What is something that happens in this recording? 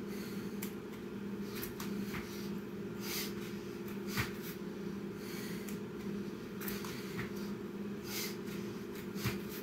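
A man breathes hard with exertion.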